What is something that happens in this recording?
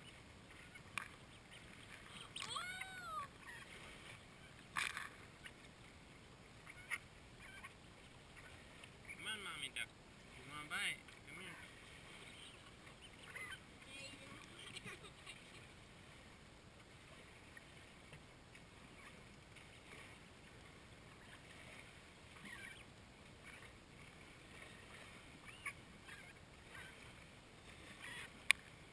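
Ducklings peep in high, thin chirps close by.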